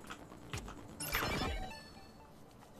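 An electronic chime rings out briefly.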